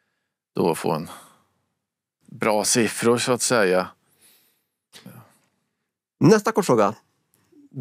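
A man speaks calmly into a microphone, in short bursts with pauses.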